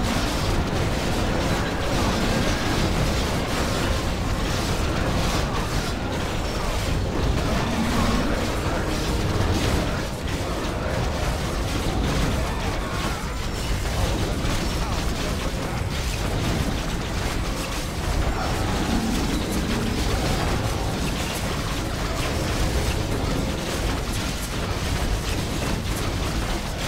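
Swords clash and clang in a busy battle.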